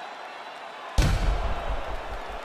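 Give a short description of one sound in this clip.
A heavy kick lands with a dull thud.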